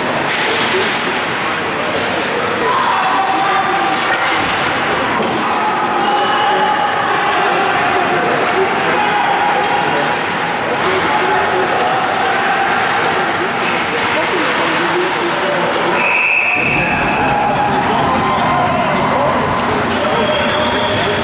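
A crowd of spectators cheers and shouts in an echoing rink.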